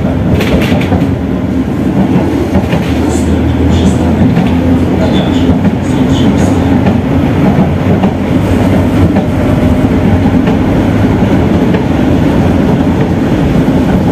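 A tram's motor hums steadily inside the car as it rolls along.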